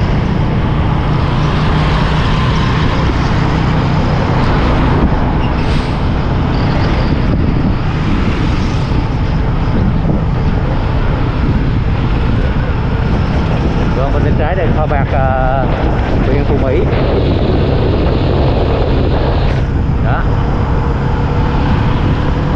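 Wind rushes loudly past a moving motorbike.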